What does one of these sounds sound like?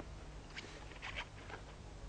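A handbag clasp clicks open.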